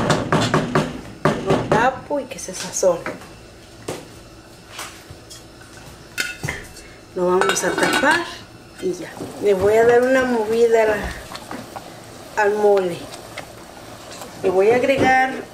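A wooden spoon scrapes and stirs thick sauce in a metal pot.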